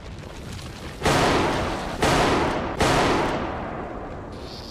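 A rifle fires three loud shots, each echoing away.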